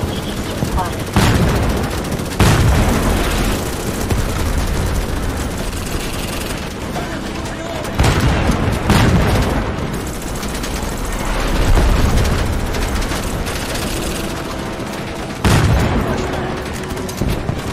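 A gun fires rapidly in long bursts.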